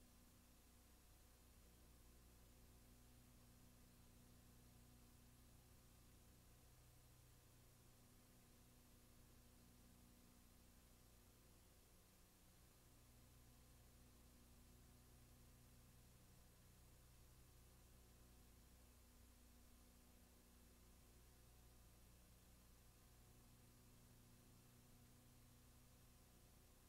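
Faint static hisses steadily.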